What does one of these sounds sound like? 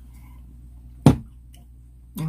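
A bottle cap clicks open.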